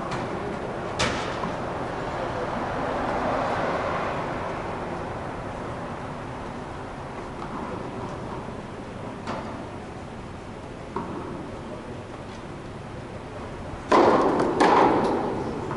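Tennis rackets strike a ball with sharp pops in a large echoing hall.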